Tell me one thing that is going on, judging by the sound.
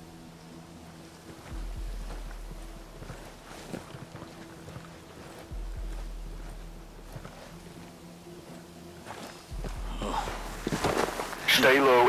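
Footsteps rustle softly through tall ferns and grass.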